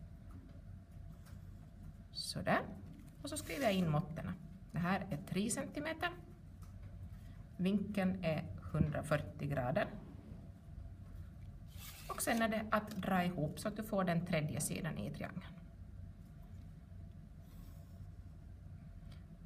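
A pencil scratches lines on paper.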